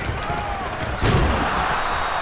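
Players' pads crash together in a sudden hit.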